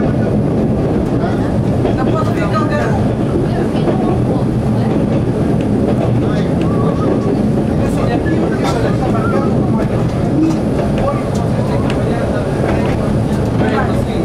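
A train's engine rumbles steadily up close.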